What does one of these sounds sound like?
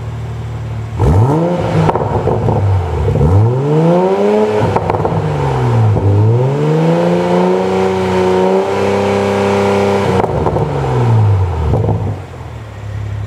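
A car engine revs up and down repeatedly, roaring loudly through its exhaust.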